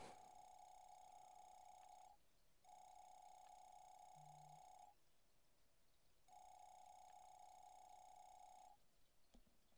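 A rapid, high beeping chatters in short bursts as dialogue text types out.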